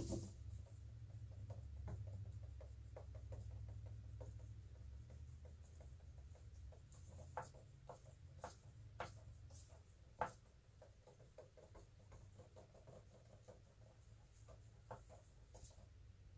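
A stick scrapes and taps inside a cup as thick paint is stirred.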